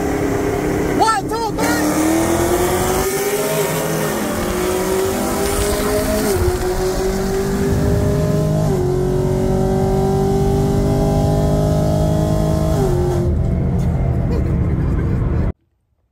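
Wind and tyre noise rush steadily past a moving car.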